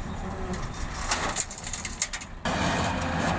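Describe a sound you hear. Rocks and gravel clatter and crash into a truck bed.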